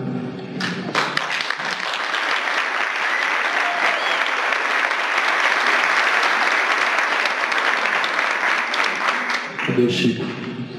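An audience applauds and cheers.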